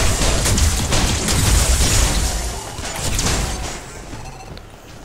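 Electric energy blasts crackle and hiss.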